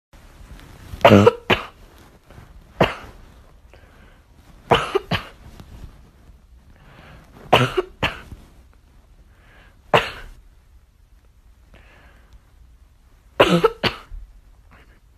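A small dog barks loudly in short bursts.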